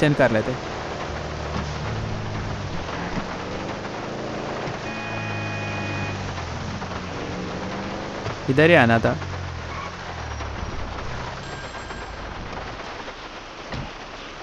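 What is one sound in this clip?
Rain patters steadily on the road.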